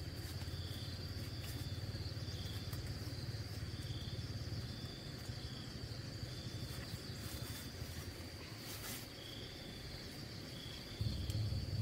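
Leaves rustle and snap as greens are picked by hand.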